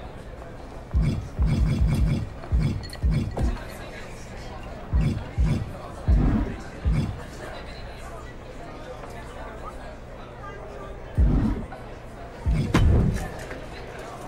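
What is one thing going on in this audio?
Soft game menu sounds thump as selections change.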